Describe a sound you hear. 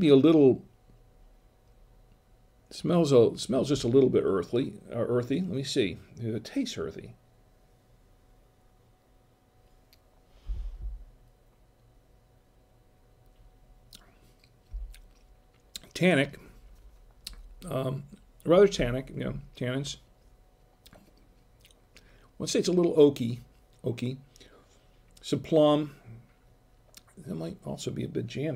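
A middle-aged man speaks calmly and close into a microphone, with pauses.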